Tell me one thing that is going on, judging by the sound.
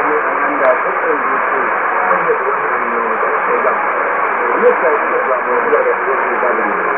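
A shortwave radio plays a noisy broadcast with faint warbling, thin-sounding tones through a small loudspeaker.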